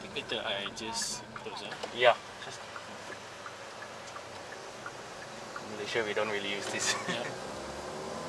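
A man talks close by inside a car.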